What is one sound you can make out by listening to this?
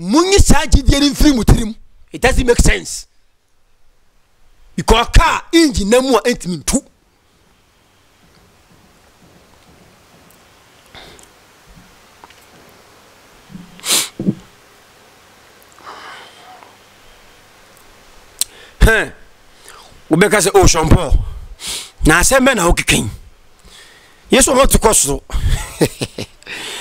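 A young man speaks with animation into a close microphone, at times shouting.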